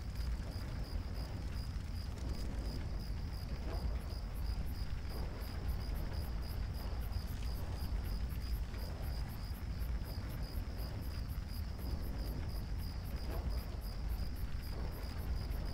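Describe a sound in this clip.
A column of fire roars with a deep, steady rumble.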